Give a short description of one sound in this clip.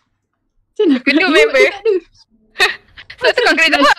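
Young women laugh over an online call.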